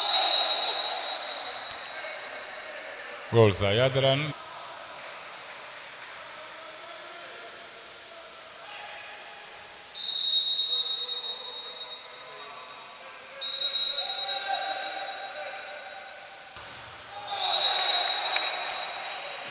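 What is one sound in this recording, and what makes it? Water splashes as swimmers thrash and kick.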